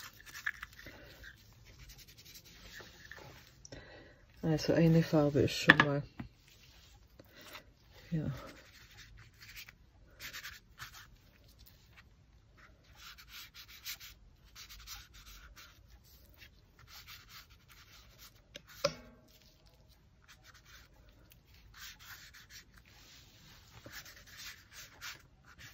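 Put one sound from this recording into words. A sponge dabs and rubs softly against paper.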